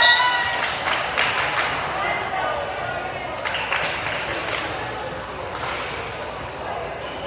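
A crowd of players and spectators chatters and calls out in a large echoing gym.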